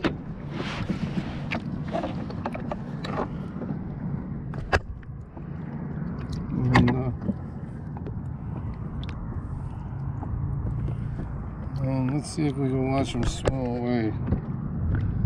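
Water splashes softly from a hose into a lake.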